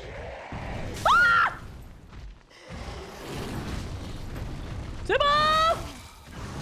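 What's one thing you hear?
A young woman shrieks loudly into a close microphone.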